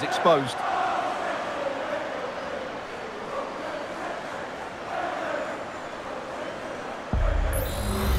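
A stadium crowd cheers and roars loudly.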